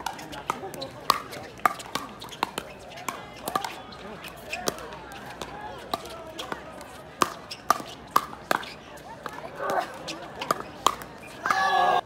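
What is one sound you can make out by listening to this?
Paddles pop sharply against a plastic ball in quick rallies.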